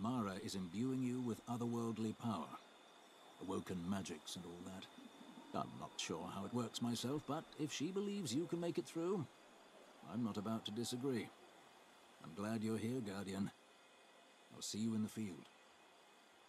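A man speaks calmly and steadily, with pauses.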